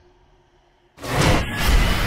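Water splashes loudly in a bathtub.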